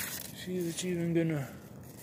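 A hand rustles the leaves of a plant.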